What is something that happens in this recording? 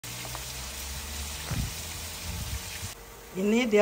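Banana leaves rustle softly.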